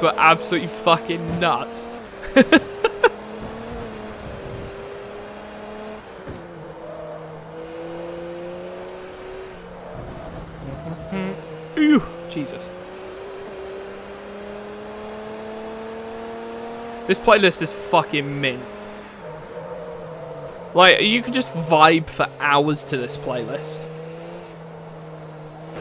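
A racing car engine hums steadily, its pitch rising and falling as the car speeds up and slows down.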